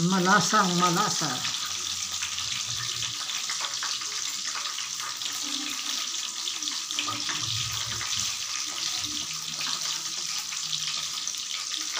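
A knife slices through garlic cloves.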